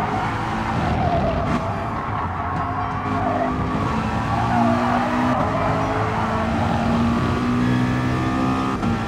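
A race car engine roars, revving up and down as gears shift.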